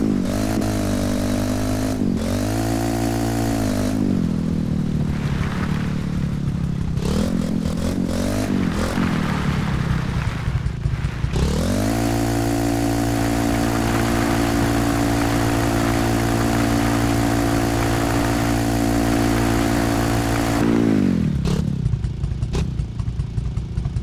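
A motorbike engine revs up and down.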